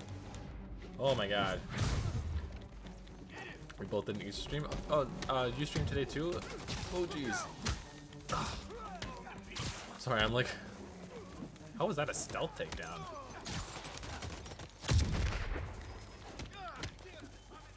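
Punches land with heavy thuds during a brawl.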